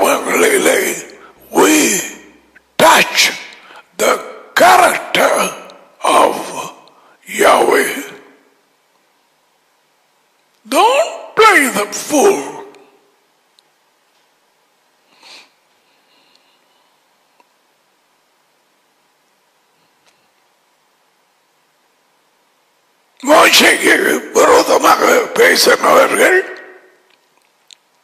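An elderly man speaks with animation into a headset microphone, in bursts with long pauses.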